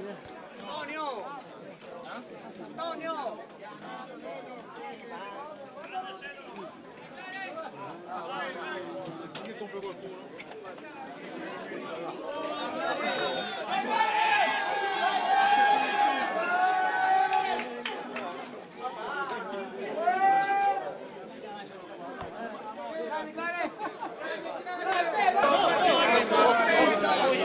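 A dense crowd of men and women talks and shouts all around, close by.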